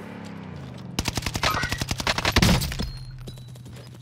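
An automatic rifle fires a rapid burst of shots.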